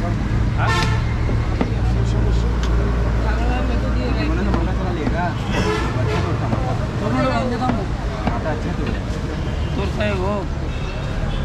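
A knife cuts meat on a wooden board.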